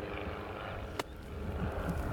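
A golf club thumps into sand with a sharp splash.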